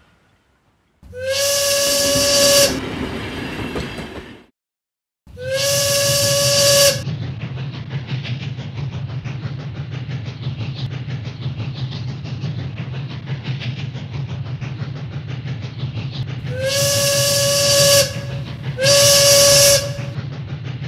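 A steam train whistle toots loudly several times.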